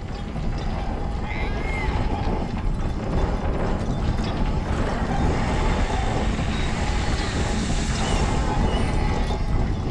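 Strong wind rushes and roars steadily.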